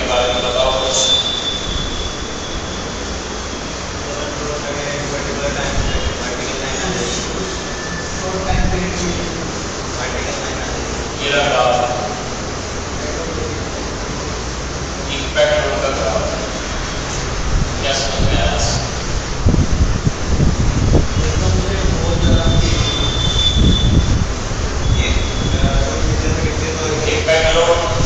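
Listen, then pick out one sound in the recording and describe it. A young man lectures calmly.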